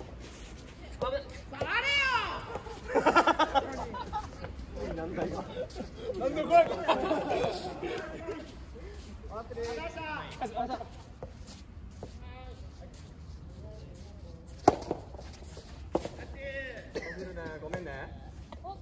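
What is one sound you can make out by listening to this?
Young men talk and call out nearby, outdoors.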